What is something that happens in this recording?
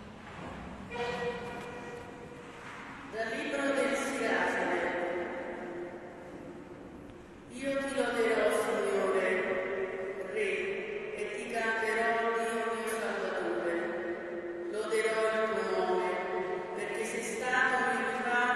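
A woman sings through a microphone and loudspeakers, echoing in a large hall.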